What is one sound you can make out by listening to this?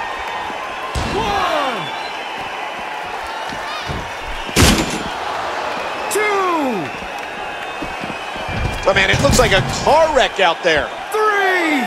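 Punches land with heavy, sharp thuds.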